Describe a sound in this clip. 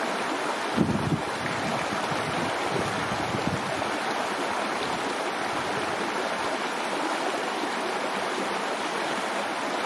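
Water trickles and babbles steadily over rocks in a shallow stream.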